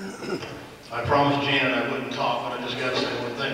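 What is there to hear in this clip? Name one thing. A concert band with tubas and brass plays in a large hall.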